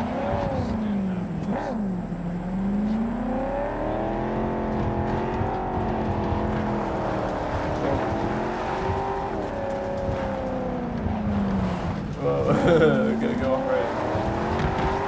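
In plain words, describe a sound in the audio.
A car engine hums and revs, rising and falling in pitch.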